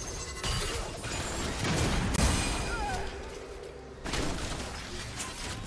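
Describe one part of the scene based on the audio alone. Spell effects whoosh and crackle in a fast game fight.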